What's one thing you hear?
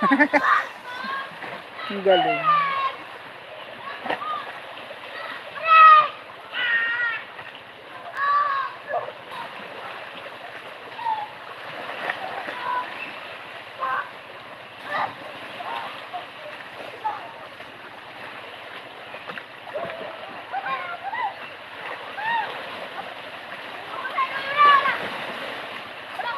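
Small waves lap gently against rocks close by.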